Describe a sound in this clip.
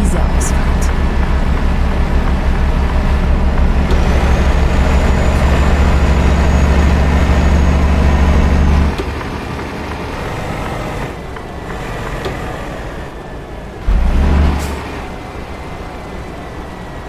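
A truck engine rumbles steadily, then drops to a low idle as the truck slows.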